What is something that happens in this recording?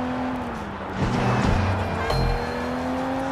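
A car crashes into something with a loud thud.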